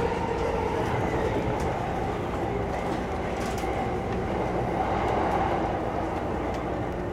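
A train rumbles steadily along the tracks, its wheels clicking over the rail joints.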